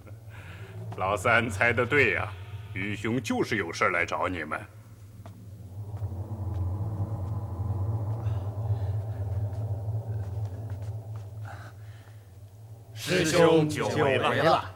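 A man speaks loudly and dramatically.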